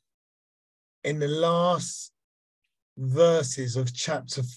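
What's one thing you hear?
A man speaks calmly and closely into a microphone, as over an online call.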